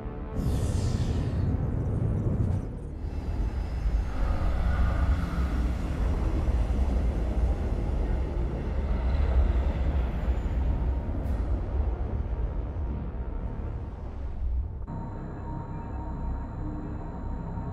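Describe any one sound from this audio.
A spaceship's engines roar with a deep, steady rumble.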